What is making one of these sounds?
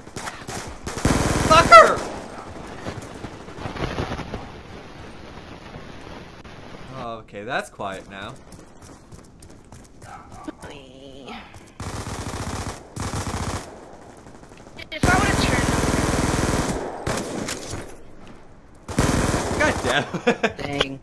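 Gunfire bursts out in short volleys.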